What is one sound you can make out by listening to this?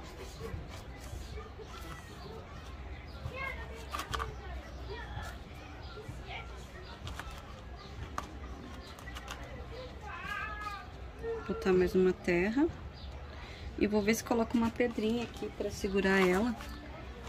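Fingers press and rustle soil in a small plastic pot.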